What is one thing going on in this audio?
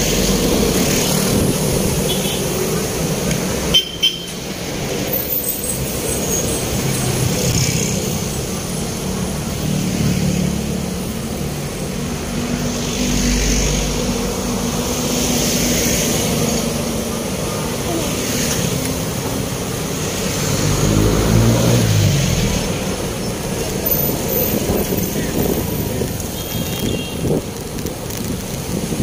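A motorcycle engine idles and hums steadily close by.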